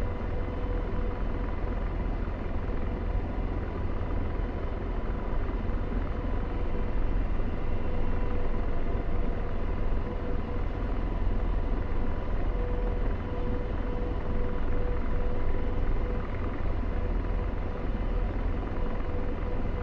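A helicopter's rotor and turbine roar steadily from inside the cockpit, with a constant whine.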